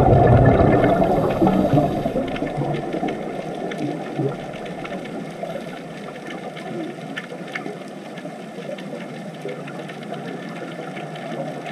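Divers' air bubbles gurgle and rumble underwater.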